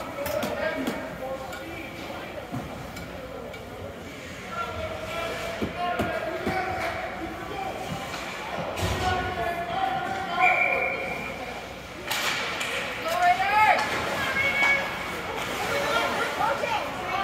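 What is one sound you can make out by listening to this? Hockey sticks clack against the ice and puck.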